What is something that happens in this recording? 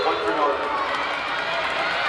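Young women shout and cheer together nearby.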